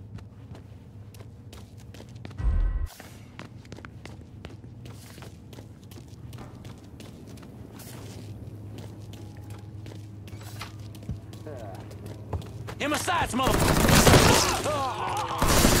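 Soft footsteps tap on a hard floor.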